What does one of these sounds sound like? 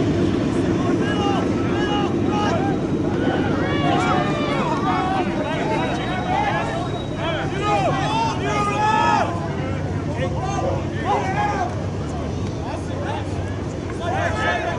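A crowd of spectators shouts and cheers close by, outdoors.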